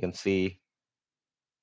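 A young man speaks briefly and calmly into a headset microphone.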